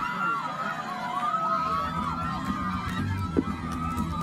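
Young women shout and cheer excitedly nearby, outdoors.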